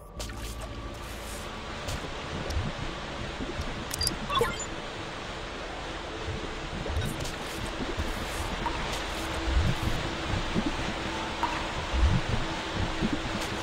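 Footsteps patter on a wet floor.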